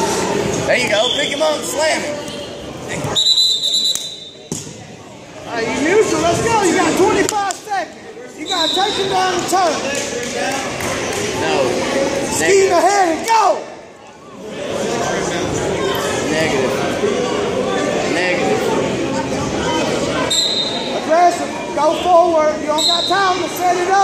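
A referee blows a whistle in short blasts.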